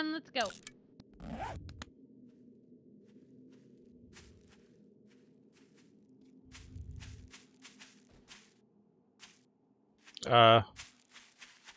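Footsteps crunch on leaves and dry ground.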